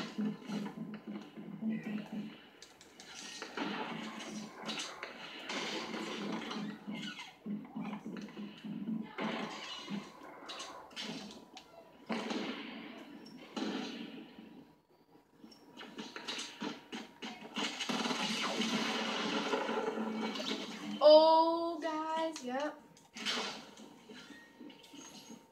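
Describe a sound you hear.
Video game footsteps and effects play through a television speaker.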